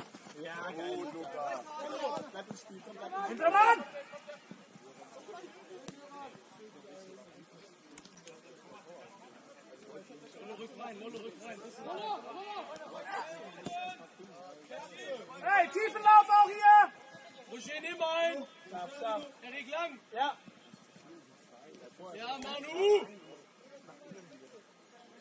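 Young men shout to each other across an open field, heard from a distance.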